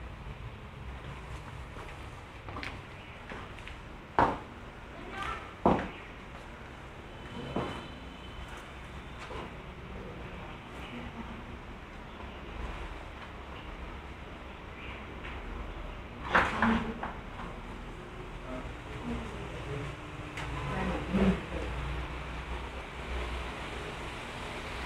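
Footsteps tap and shuffle on a hard floor.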